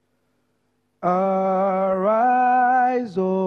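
A young man sings long, held notes into a microphone over loudspeakers.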